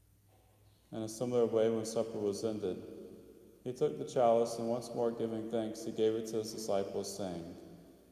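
A man chants through a microphone in a large echoing hall.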